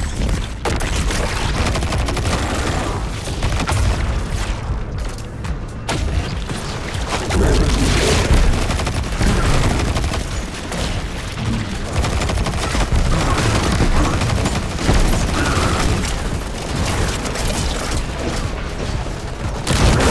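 Rapid gunfire rattles and booms.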